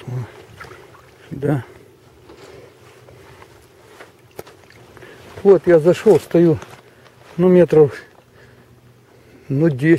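Small waves lap gently on open water.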